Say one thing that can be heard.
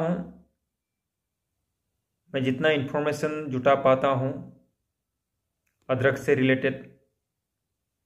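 A young man speaks calmly and close to the microphone, in short phrases with pauses.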